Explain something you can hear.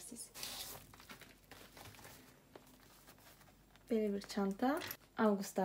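A pouch rustles softly as hands handle it.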